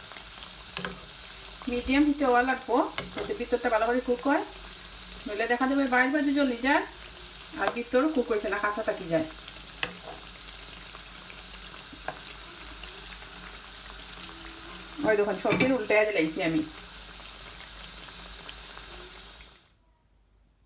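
Hot oil sizzles and crackles steadily in a frying pan.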